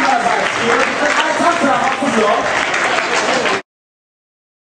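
A large crowd cheers and sings loudly.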